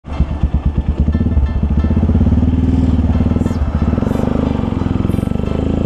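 A motorcycle engine rumbles close by, its pulsing speeding up as it accelerates.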